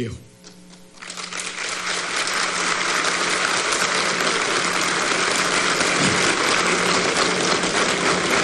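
A large crowd applauds steadily, echoing through a large hall.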